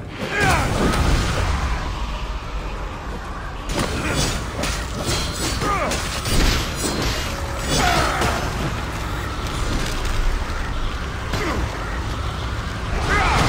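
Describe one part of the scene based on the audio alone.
Energy beams crackle and roar in bursts.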